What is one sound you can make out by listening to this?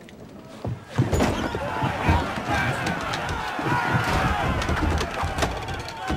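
A crowd of men shouts and cheers loudly.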